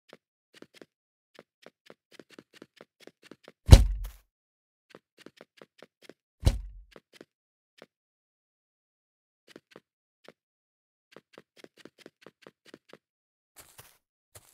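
Quick, light footsteps patter along a hard surface.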